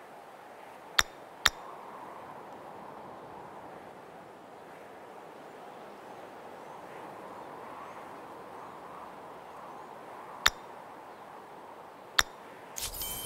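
Short sharp clicks sound now and then.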